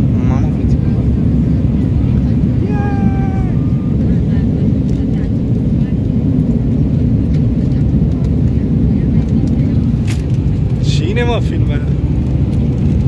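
A jet engine roars steadily inside an airliner cabin.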